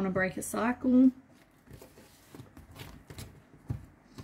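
A card is slapped down onto a wooden table.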